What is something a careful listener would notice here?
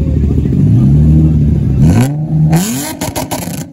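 A sports car engine revs loudly, then falls back.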